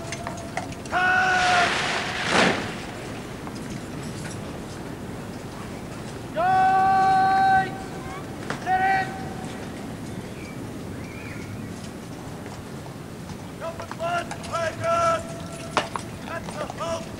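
A man shouts long drawn-out drill commands outdoors.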